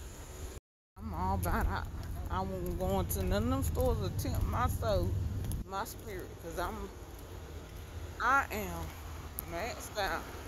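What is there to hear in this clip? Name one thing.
A woman talks close to a phone, speaking with animation.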